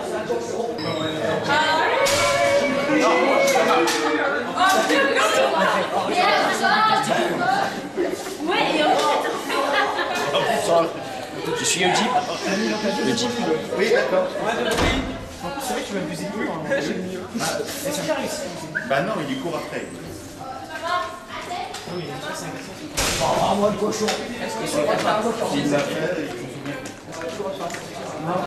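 Several young men and women chat and laugh close by in a lively crowd.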